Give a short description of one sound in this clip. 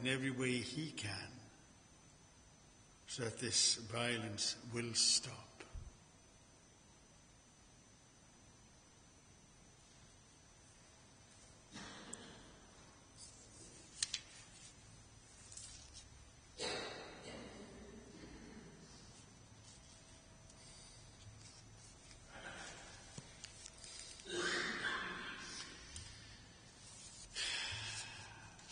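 A man reads out through a microphone in a large echoing hall, with pauses.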